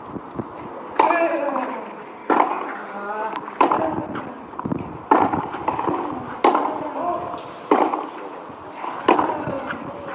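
A tennis ball is hit back and forth with rackets in sharp pops.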